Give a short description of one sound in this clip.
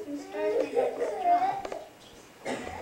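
A young girl speaks clearly into a microphone.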